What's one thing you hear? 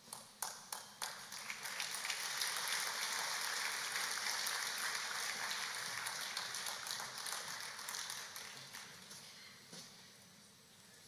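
An audience claps and cheers in a large echoing hall.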